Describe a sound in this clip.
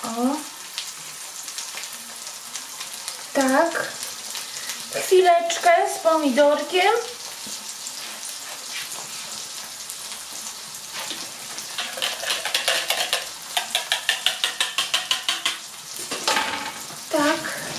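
Food sizzles gently in a frying pan.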